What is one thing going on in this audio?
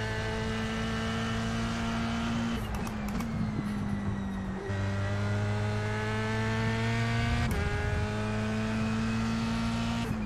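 A racing car engine whines at high revs, dropping in pitch at each gear change and climbing again.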